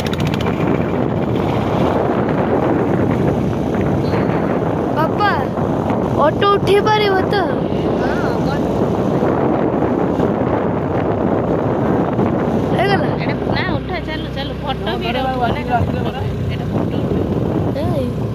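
Wind rushes loudly past a moving motorbike.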